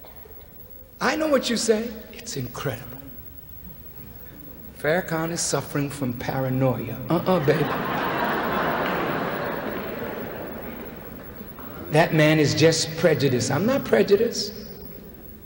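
A man speaks forcefully into a microphone in a large echoing hall, with long pauses.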